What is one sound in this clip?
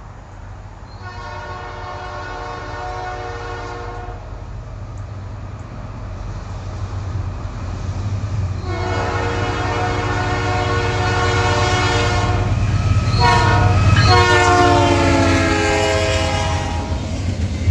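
A train horn blows loudly several times.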